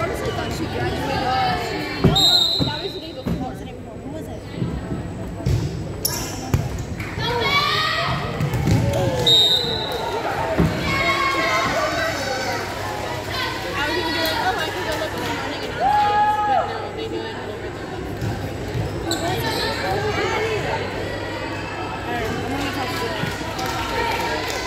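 A volleyball is struck with sharp thuds in a large echoing gym.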